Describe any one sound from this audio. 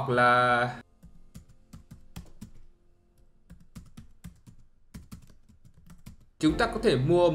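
Keys on a keyboard click rapidly in short bursts.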